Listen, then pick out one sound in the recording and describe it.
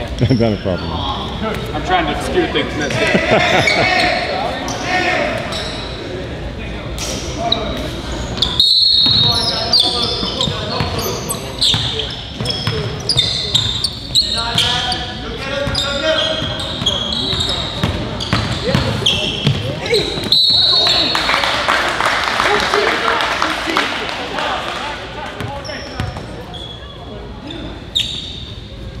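Spectators chatter in an echoing gym.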